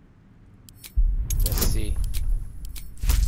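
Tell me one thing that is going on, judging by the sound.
A die rattles and tumbles loudly.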